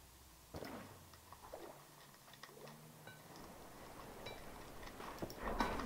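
Water pours out and flows.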